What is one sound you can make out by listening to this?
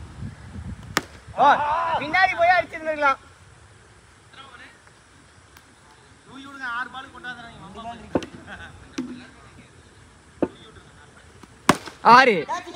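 A cricket bat sharply strikes a ball.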